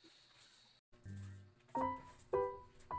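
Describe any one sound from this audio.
A plastic bowl is set down on a table with a light knock.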